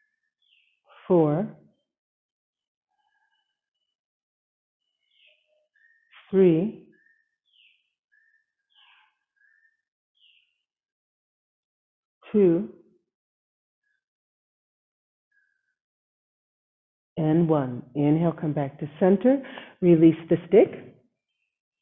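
A woman speaks calmly through an online call, in short phrases with pauses.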